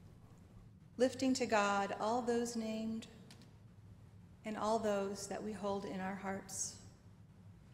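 A woman speaks slowly and calmly through a microphone.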